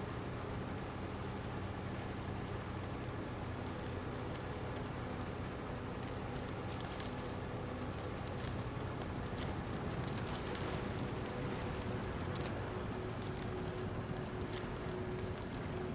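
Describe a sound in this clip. Brush and twigs scrape against a truck's body.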